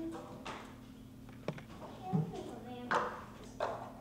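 A plastic cup knocks on a wooden table.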